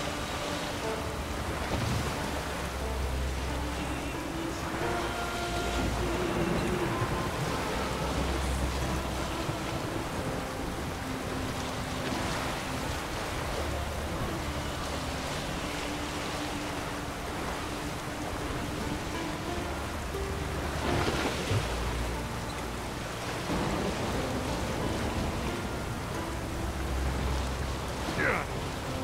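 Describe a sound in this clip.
Heavy rain pours steadily onto rough water.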